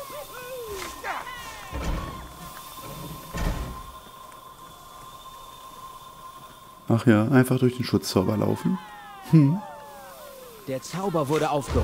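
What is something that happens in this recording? A magic spell hums steadily.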